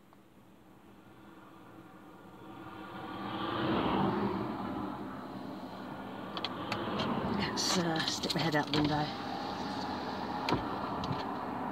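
A car engine hums and rises steadily inside the car.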